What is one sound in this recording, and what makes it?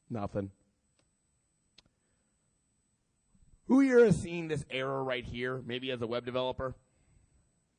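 A man speaks calmly into a microphone over a loudspeaker.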